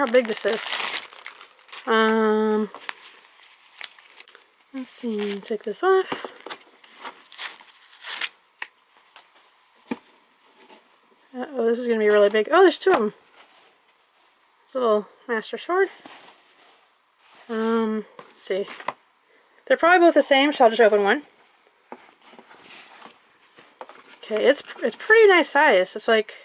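Cloth rustles and crinkles as it is unfolded and handled.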